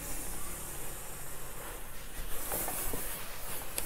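An iron glides over cloth with a soft rubbing sound.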